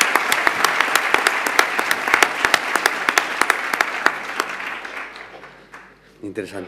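An audience applauds in a large hall, then fades out.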